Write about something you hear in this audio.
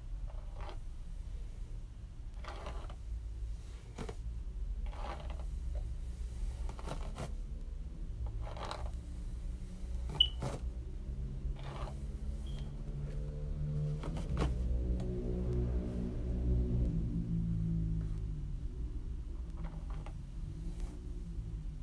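A brush swishes through long hair.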